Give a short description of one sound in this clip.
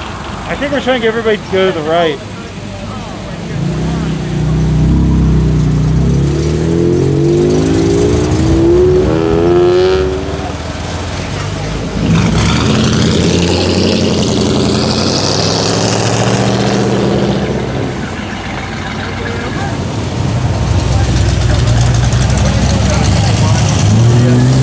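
Car engines rumble and rev close by as cars pull away one after another.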